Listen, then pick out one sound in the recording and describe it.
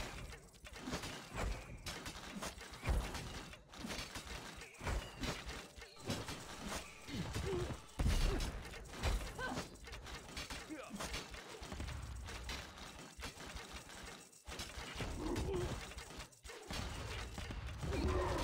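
Game towers fire and blast at marching enemies in quick bursts.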